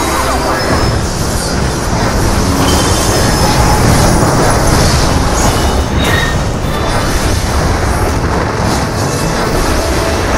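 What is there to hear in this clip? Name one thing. Magical blasts and spell effects crash and whoosh throughout.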